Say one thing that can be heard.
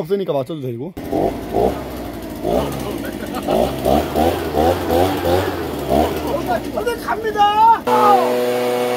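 A leaf blower engine roars.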